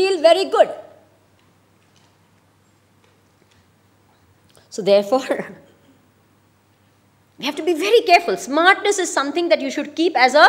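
A woman speaks with animation into a microphone, with pauses between phrases.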